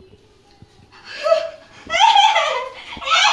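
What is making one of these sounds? A young man laughs cheerfully close by.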